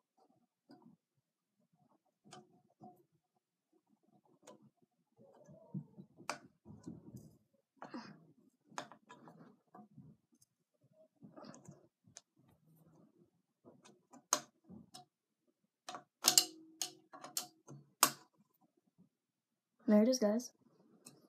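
A metal hex key clicks and scrapes against a scooter's clamp.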